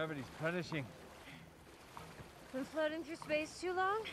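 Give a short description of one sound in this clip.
Legs splash through shallow water.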